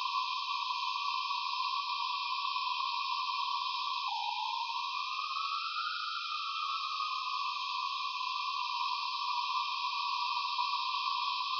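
A high electronic hiss crackles steadily throughout.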